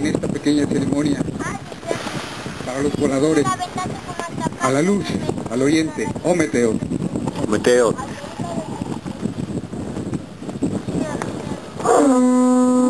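A crowd of men and women talks and calls out outdoors.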